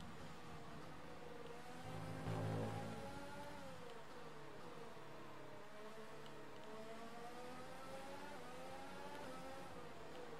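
A racing car engine whines loudly, rising and falling in pitch as it speeds up and slows down.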